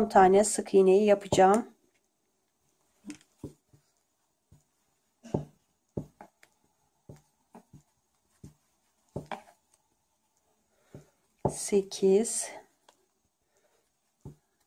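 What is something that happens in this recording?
A crochet hook softly taps and rustles through yarn.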